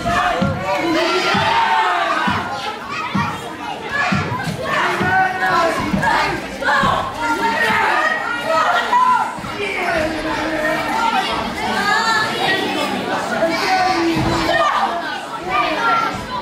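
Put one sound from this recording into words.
Bodies thud against ring ropes and the mat.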